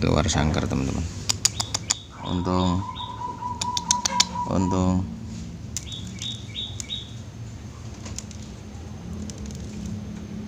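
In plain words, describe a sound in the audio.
A bamboo birdcage rattles and clicks as a hand reaches inside.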